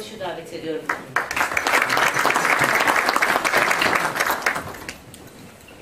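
An audience claps loudly.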